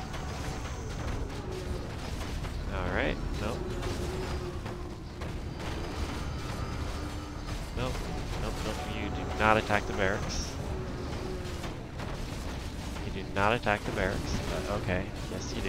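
Weapons clash and strike in a busy fight.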